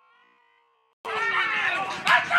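Young men shout to each other outdoors.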